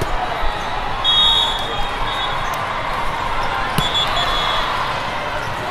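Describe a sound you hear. Sneakers squeak sharply on a court floor.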